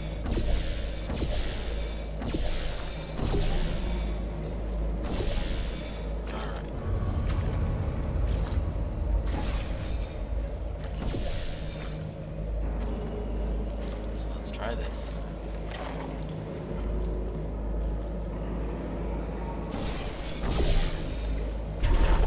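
An energy gun fires again and again with short, sharp zaps.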